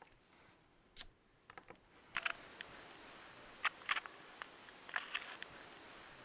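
Keys click softly as someone taps a small device.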